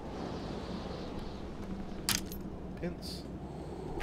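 Bolt cutters snap through a metal padlock with a sharp click.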